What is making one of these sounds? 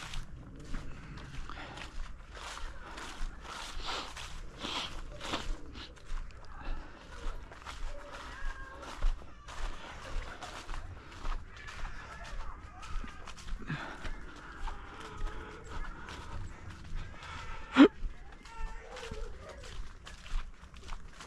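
Footsteps crunch steadily on dry leaves and a path outdoors.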